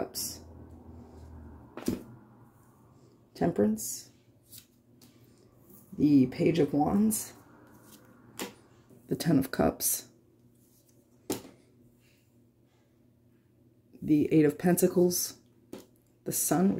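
Playing cards slide and tap softly on a wooden table.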